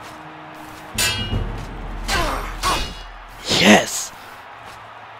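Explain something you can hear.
A sword clangs against blows in a fight.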